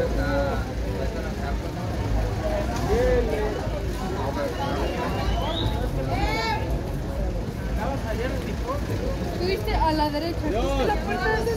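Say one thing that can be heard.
A crowd of men and women chatter and call out loudly outdoors.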